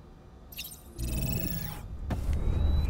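A sliding panel hums and whirs as it opens.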